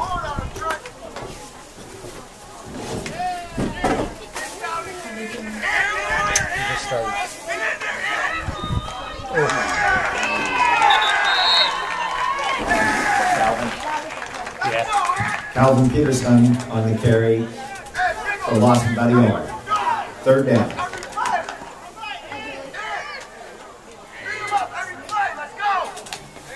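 Men and boys talk and call out nearby.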